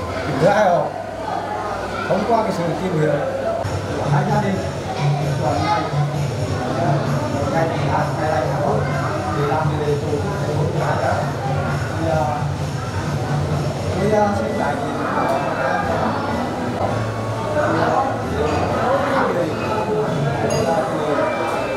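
A middle-aged man speaks steadily and calmly nearby.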